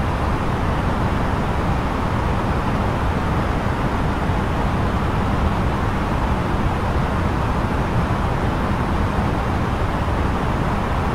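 A steady roar of air and jet engines fills an airliner cockpit in flight.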